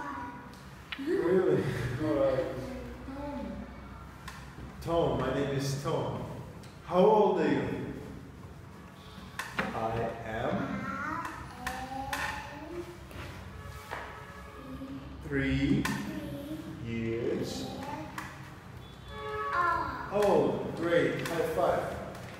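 A small boy answers in a high voice, close by.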